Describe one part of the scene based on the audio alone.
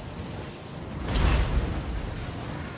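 A battle rumbles with a loud, deep boom.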